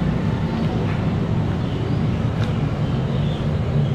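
A plastic packet tears open.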